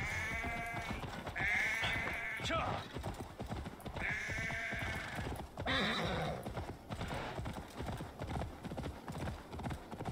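Horse hooves thud steadily on the ground.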